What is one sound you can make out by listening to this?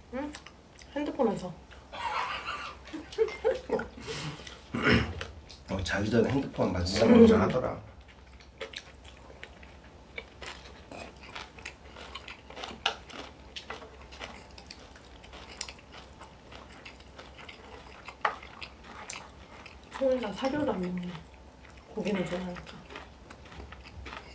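Chopsticks clink against dishes.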